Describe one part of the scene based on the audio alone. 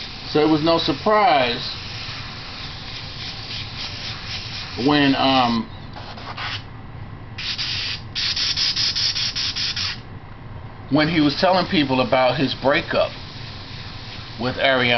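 A pencil scratches and rubs on paper.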